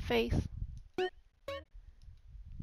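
A game menu beeps with short bright chimes.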